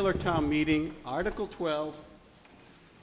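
A man speaks through a loudspeaker in a large hall.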